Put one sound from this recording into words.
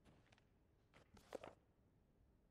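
A book page rustles briefly.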